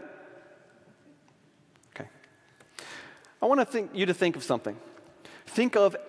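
An older man speaks calmly through a microphone in a large echoing hall.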